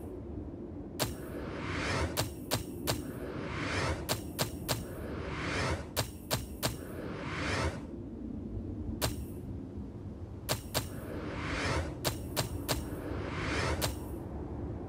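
Menu clicks tick sharply as selections are confirmed.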